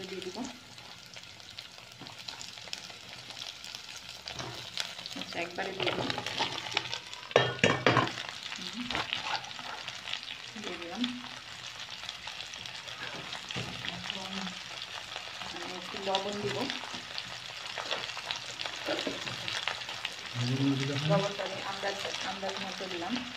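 Vegetables sizzle softly in a hot pan.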